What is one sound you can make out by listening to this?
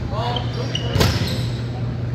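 A volleyball is struck with a sharp slap that echoes around a large hall.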